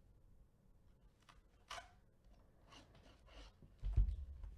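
A knife slices through cardboard.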